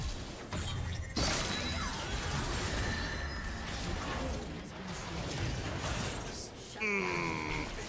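Magic blasts and clashing effects crackle in a video game battle.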